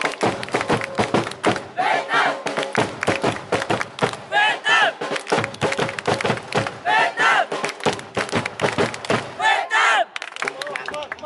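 A crowd of young people chants and sings loudly outdoors.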